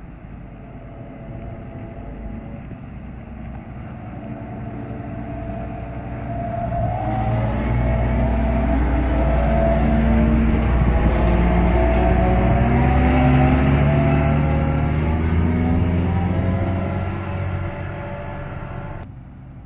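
A diesel combine harvester approaches, passes close by and drones away into the distance.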